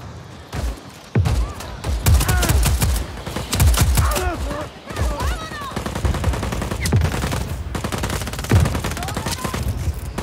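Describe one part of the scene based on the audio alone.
Rifles fire in rapid, crackling bursts.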